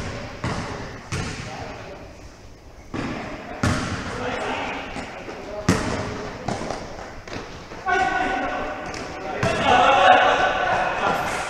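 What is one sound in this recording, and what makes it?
A basketball bounces on a hard floor, echoing through a large hall.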